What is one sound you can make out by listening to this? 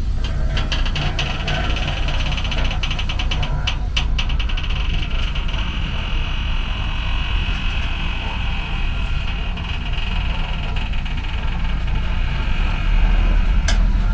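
Grain pours and hisses out of a tipping trailer.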